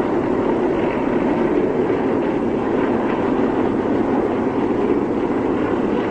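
Many propeller aircraft engines drone overhead.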